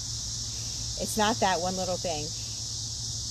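A woman speaks briefly, close by.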